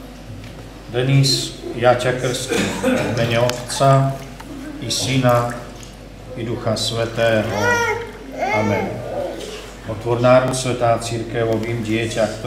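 A man speaks calmly and clearly nearby, in a room with some echo.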